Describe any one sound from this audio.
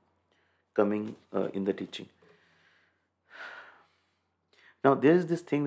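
A man speaks calmly and close into a microphone, pausing between phrases.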